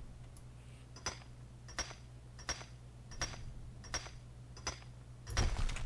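A pickaxe strikes rock with sharp, repeated clinks.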